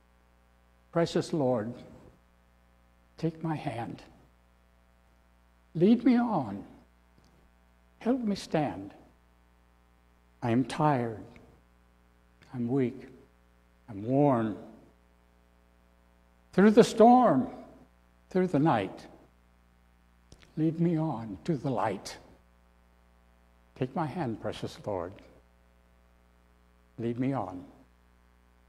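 An elderly man speaks slowly and deliberately into a microphone, with pauses between phrases.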